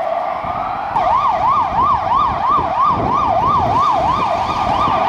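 A siren switches to a fast, rapid yelp.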